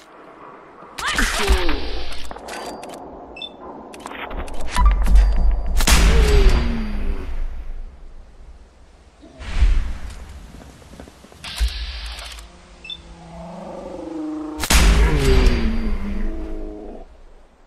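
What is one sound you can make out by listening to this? A laser rifle fires in sharp, zapping blasts.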